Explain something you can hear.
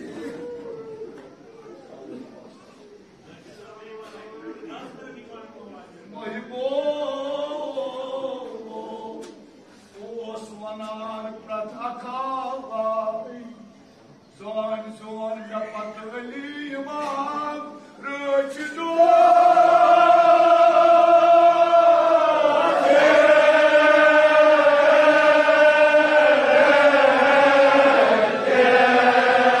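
A man chants a mournful lament through a loudspeaker in a large echoing hall.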